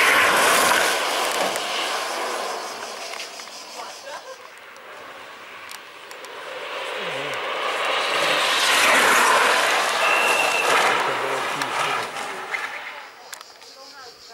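A go-kart engine whines loudly as it speeds past and fades away.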